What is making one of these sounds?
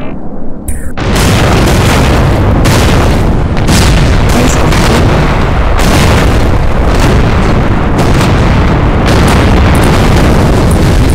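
Explosions boom repeatedly.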